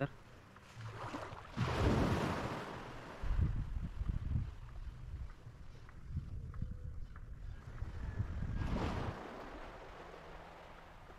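Small waves lap gently at the shallow water's edge.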